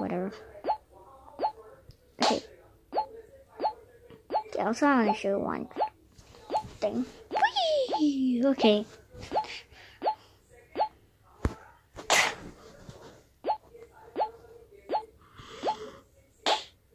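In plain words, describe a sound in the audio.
A game ball bounces with short, evenly repeated blips.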